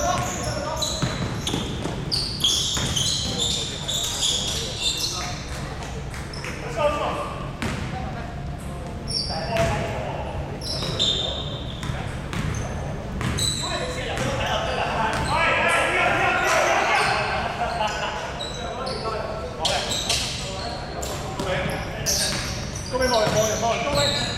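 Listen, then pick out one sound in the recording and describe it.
Players call out to each other across the echoing hall.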